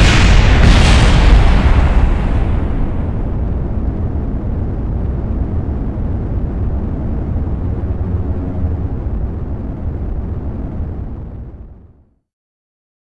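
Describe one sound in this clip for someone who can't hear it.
A large fire roars with a deep rumble, then abruptly falls silent.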